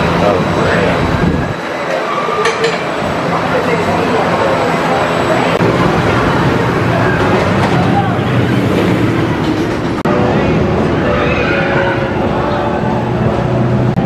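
A roller coaster train rumbles and clatters along a wooden track.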